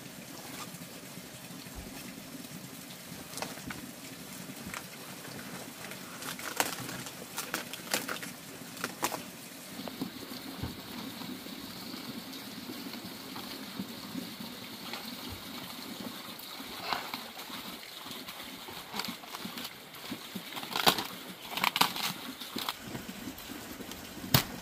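Cabbage leaves rustle and crackle as they are handled.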